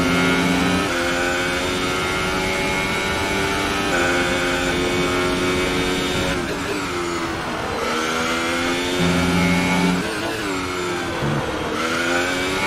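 A racing car engine screams at high revs, its pitch dropping and climbing again with each gear change.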